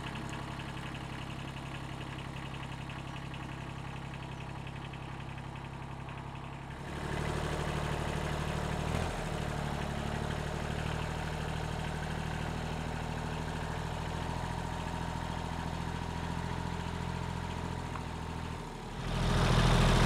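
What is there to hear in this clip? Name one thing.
A tractor engine chugs steadily nearby.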